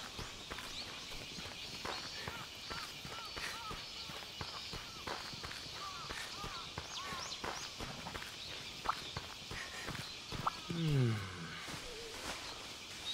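Footsteps run steadily over grass and dirt.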